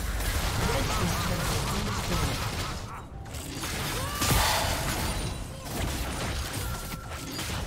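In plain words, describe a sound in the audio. Magical blasts whoosh and crackle during a fast battle.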